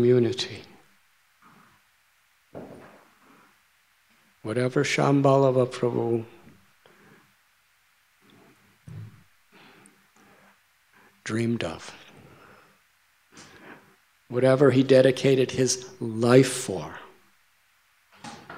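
An elderly man speaks calmly and warmly into a microphone, with pauses between phrases.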